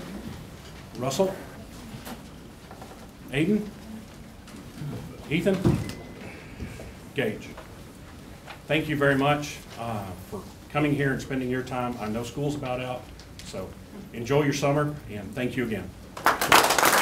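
A man speaks into a microphone, pausing between short phrases.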